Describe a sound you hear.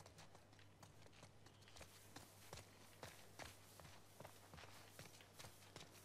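Footsteps thud softly and rustle through tall grass.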